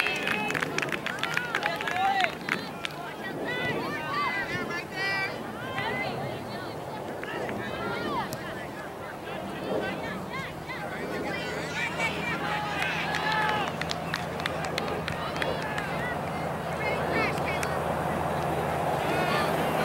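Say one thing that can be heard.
Spectators on the sideline shout and cheer outdoors.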